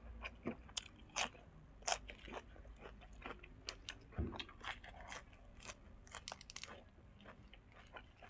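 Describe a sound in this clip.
Crisp leaves snap and crunch as a young man bites into them.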